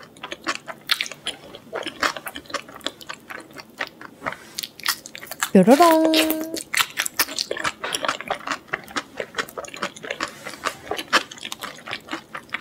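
A young woman chews crunchy food close to a microphone, with loud crisp crunches.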